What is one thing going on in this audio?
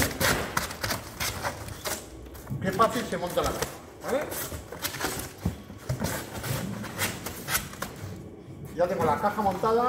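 Cardboard rustles and thumps as a box is folded and flung.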